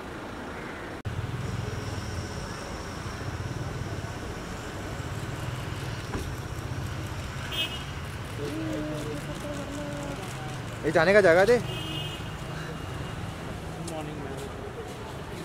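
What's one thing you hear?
Street traffic hums steadily nearby.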